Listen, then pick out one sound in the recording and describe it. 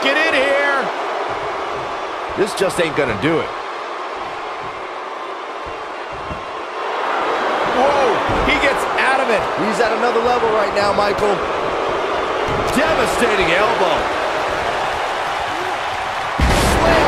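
A large crowd roars and cheers in a big arena.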